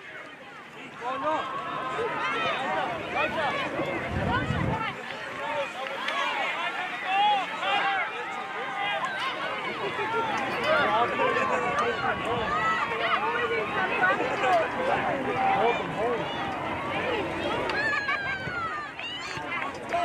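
Children and adults shout and call out across an open outdoor field.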